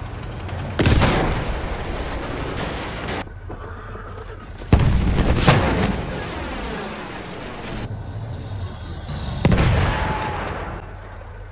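Loud explosions boom and rumble, each followed by a fading roar.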